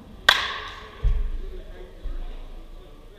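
A baseball thumps into a net.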